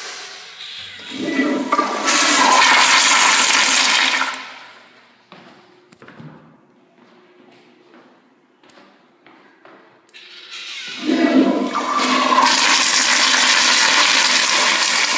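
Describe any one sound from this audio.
A toilet with a flush valve flushes with a forceful rush of water.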